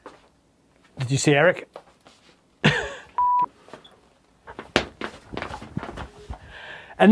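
A man laughs loudly and heartily close by.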